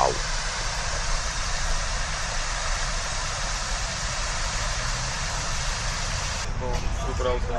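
A fountain splashes steadily close by.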